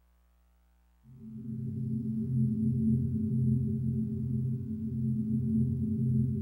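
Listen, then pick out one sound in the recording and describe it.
Gentle music with a low, steady melody plays.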